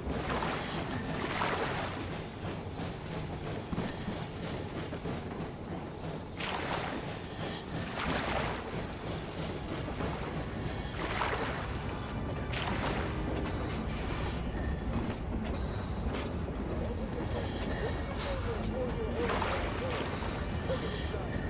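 Strong wind howls and gusts outdoors in a snowstorm.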